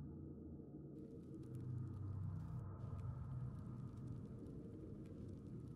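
A fire crackles softly in a fireplace.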